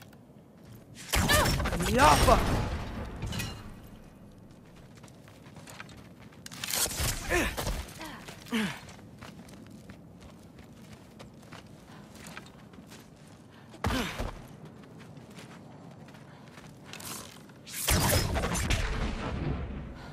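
A bowstring twangs as an arrow is shot.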